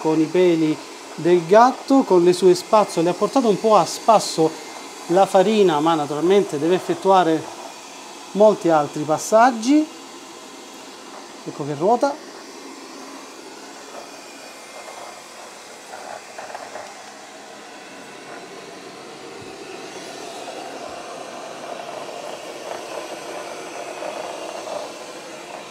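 A robot vacuum hums and whirs as it rolls over a hard floor.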